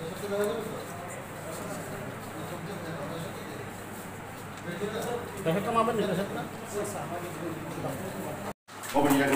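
Several adults talk nearby in low, overlapping voices.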